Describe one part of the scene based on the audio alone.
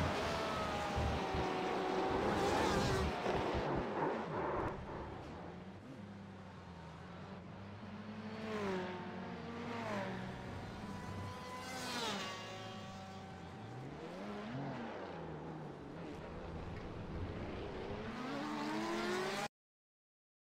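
A racing car engine roars and revs up and down through gear changes.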